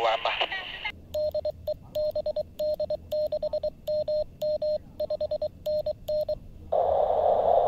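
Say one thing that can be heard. A radio receiver beeps out short and long tones of Morse code.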